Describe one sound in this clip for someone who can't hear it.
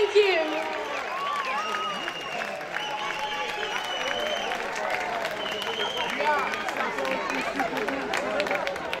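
A large outdoor crowd cheers and whistles loudly.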